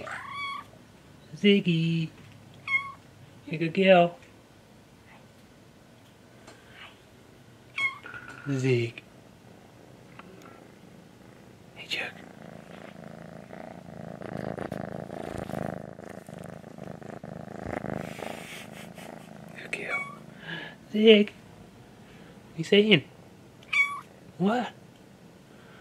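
A kitten meows loudly in short, high cries, close by.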